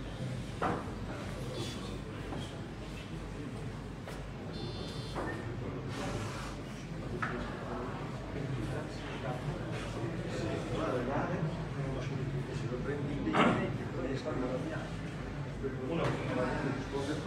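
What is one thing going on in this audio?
Billiard balls click together on a table.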